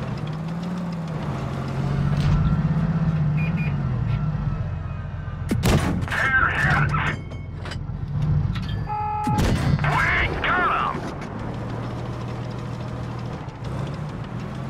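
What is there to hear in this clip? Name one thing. A tank engine rumbles.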